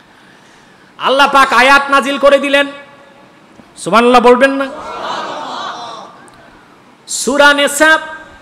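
A man chants in a loud, drawn-out voice through a microphone, in bursts with pauses between.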